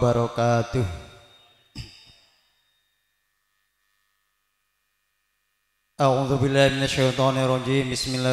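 A man sings loudly into a microphone through a loudspeaker, with pauses between lines.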